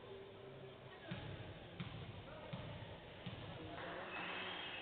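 A basketball bounces on the court with dull thumps.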